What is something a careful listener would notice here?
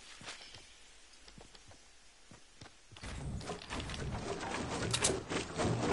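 Wooden walls snap into place with quick clattering knocks.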